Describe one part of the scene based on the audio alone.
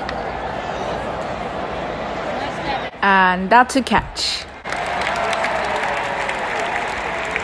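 A large crowd murmurs and chatters in a big open stadium.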